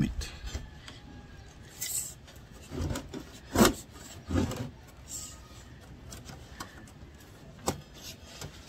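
A tape measure rattles and clicks as the blade is pulled out.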